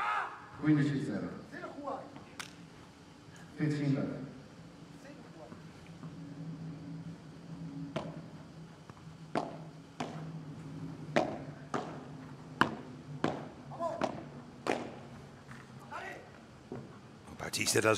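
Padel rackets strike a ball back and forth in a rally.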